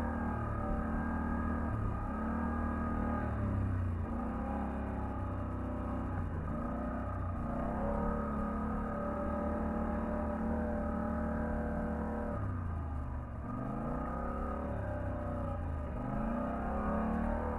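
An off-road vehicle's engine drones loudly close by, revving up and easing off over and over.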